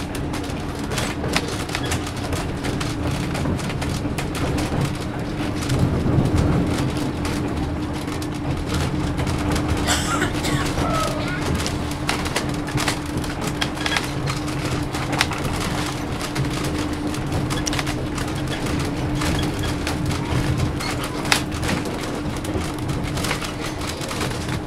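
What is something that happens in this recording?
A vehicle drives along a road with a steady engine hum and road rumble.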